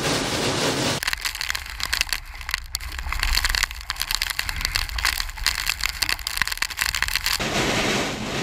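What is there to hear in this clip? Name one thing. Strong wind roars and buffets the microphone outdoors.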